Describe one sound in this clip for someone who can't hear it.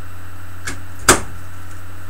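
An object knocks sharply close by.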